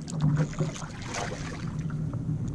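A hooked fish thrashes and splashes at the water's surface.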